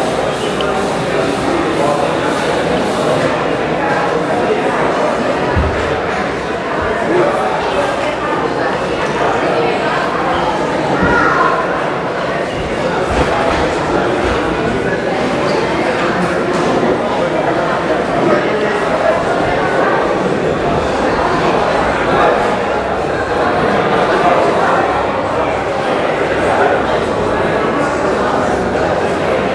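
A small crowd chatters in an indoor hall.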